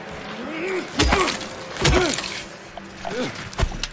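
A metal pipe strikes with heavy thuds.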